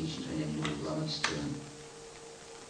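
A middle-aged man speaks calmly into a microphone over loudspeakers, in a room with some echo.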